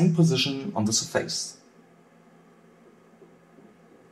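A finger presses buttons on a console with soft clicks.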